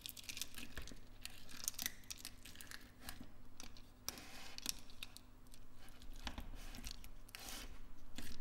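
Fingers squish and squelch through sticky slime.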